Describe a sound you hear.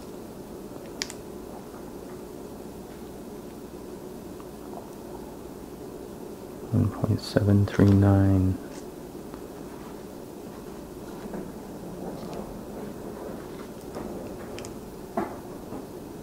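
Small metal parts click softly as they are handled close by.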